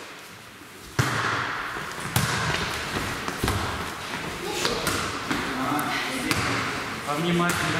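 A volleyball is struck with sharp slaps in an echoing hall.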